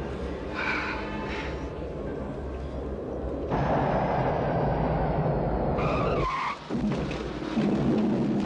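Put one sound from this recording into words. A woman cries out in fear.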